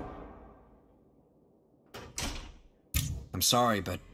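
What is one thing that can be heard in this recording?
A game menu chimes as an option is confirmed.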